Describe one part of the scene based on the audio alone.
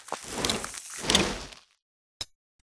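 A grenade pin clicks as it is pulled.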